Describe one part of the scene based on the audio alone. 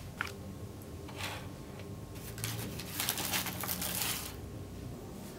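A paper bag rustles as a hand reaches into it.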